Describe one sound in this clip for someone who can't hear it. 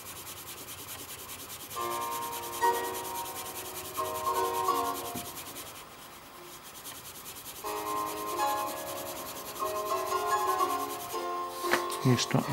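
A pencil scratches quickly back and forth on paper.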